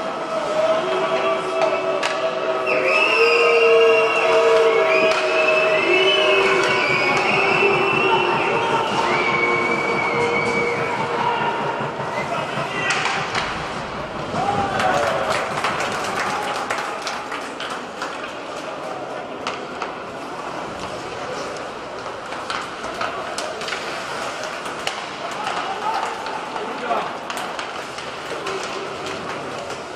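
A crowd chants and cheers in a large echoing arena.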